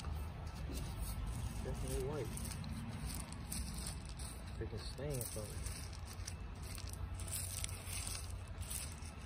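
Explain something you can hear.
Small pebbles clatter and rattle as a hand spreads them.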